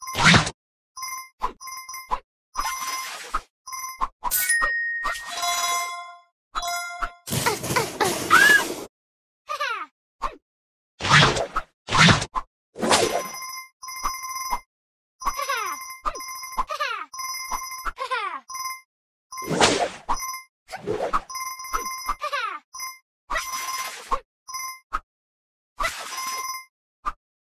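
Bright chiming pings ring out again and again.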